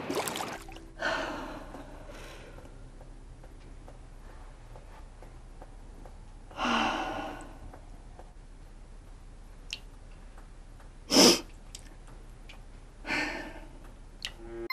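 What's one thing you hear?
A young woman speaks quietly and tensely, close by.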